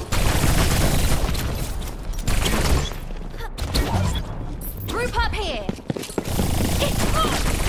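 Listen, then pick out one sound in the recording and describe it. Video game twin pistols fire in rapid bursts.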